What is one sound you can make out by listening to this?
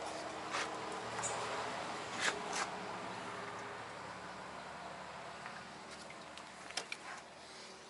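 A plastic engine cover clicks and knocks under a hand.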